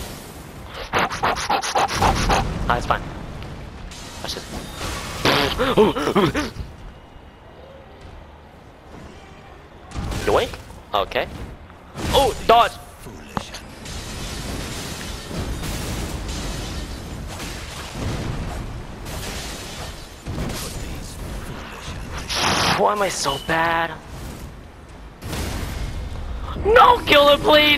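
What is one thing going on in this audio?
Heavy blows clash with loud metallic impacts.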